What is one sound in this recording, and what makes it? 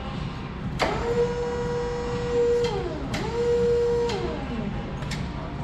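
A forklift horn beeps twice.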